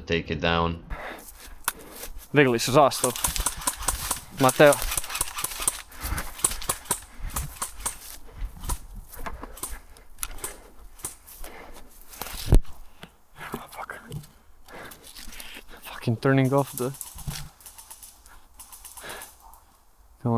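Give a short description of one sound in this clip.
Footsteps crunch through dry leaves on a forest floor.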